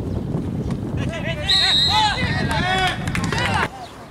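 A man nearby shouts loudly.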